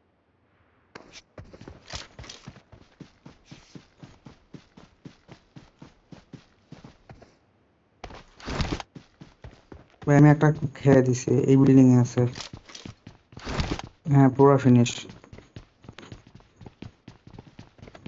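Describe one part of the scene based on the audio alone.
Footsteps patter quickly and steadily.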